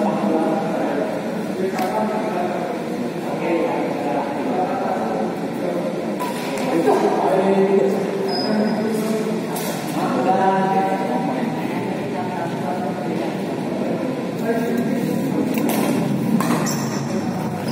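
Shuttlecocks are struck with rackets in a large echoing hall.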